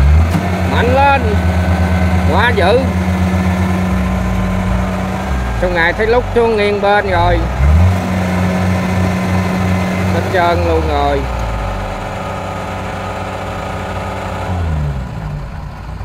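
A harvester engine roars and revs loudly, straining.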